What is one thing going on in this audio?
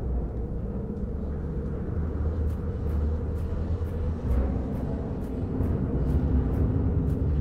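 A torch flame crackles softly.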